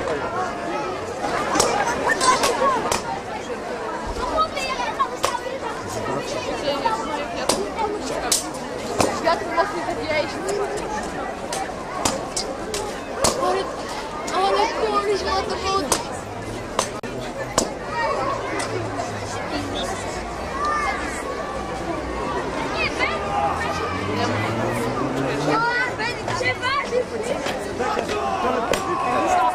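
A crowd of spectators murmurs and cheers.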